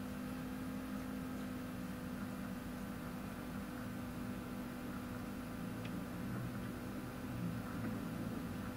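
A young man speaks quietly through a computer microphone.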